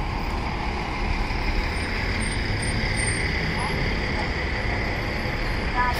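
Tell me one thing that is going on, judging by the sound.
A bus pulls forward slowly with its engine growling.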